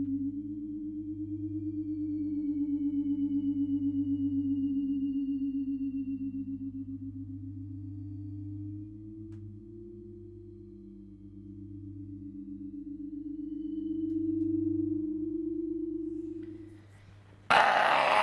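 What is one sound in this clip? A low electronic drone hums steadily through an amplifier.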